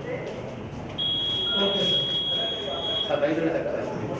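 A voting machine gives a long, steady electronic beep.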